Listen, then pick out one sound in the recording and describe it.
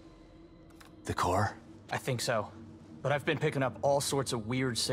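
A second man answers calmly in a deep voice.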